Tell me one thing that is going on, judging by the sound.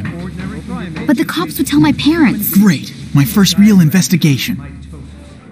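A young man speaks with animation, close by.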